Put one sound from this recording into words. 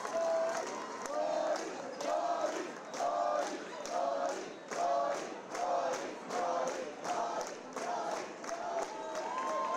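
A crowd claps hands in a fast, steady rhythm.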